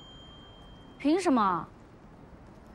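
A young woman speaks briefly close by, asking a question.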